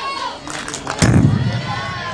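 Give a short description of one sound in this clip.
A bat hits a softball with a sharp crack.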